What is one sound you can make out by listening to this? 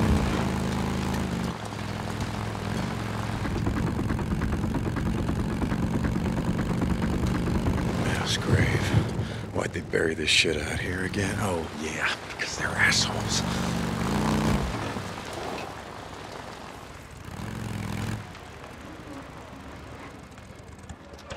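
A motorcycle engine rumbles steadily as it rides along.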